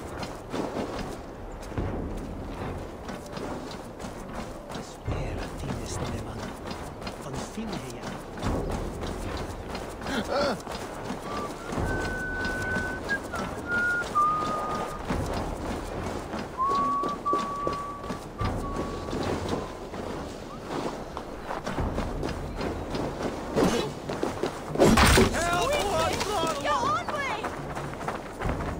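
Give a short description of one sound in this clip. Footsteps crunch steadily over snow and frozen ground.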